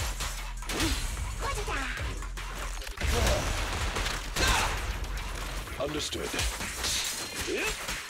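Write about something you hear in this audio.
Energy blasts whoosh and crackle in quick bursts.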